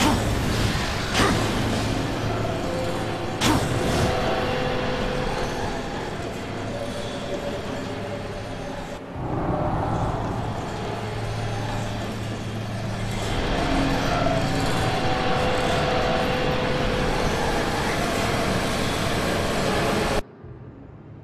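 Heavy footsteps clank on metal grating.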